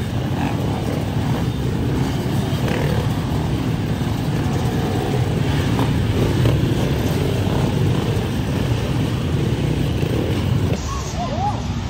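Many dirt bike engines roar loudly close by as the bikes race past.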